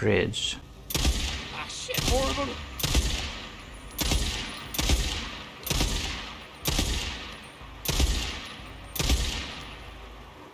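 A rifle fires shot after shot, each blast echoing away.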